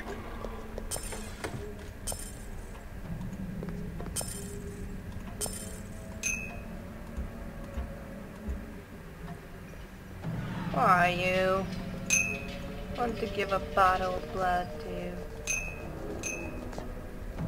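Coins clink as gold is picked up.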